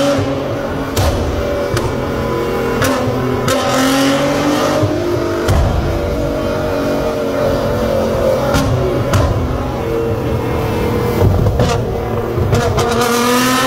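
An exhaust pops and bangs sharply as flames burst out.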